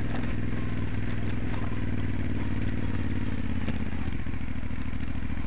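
Tyres crunch over loose gravel and stones.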